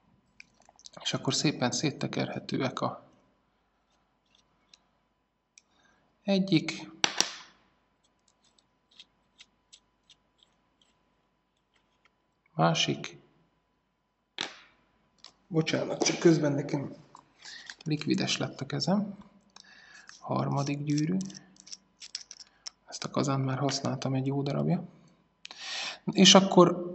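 Small metal parts click and scrape softly as they are unscrewed and handled.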